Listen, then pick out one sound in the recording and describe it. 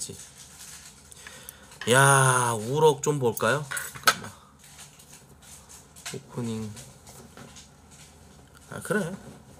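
Cutlery clicks against a plate.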